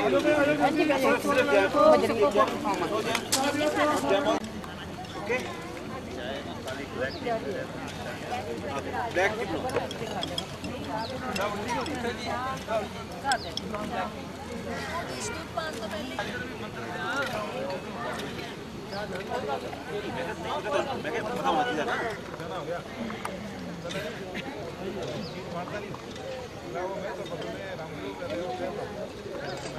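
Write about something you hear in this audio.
A crowd of men and women chatters outdoors.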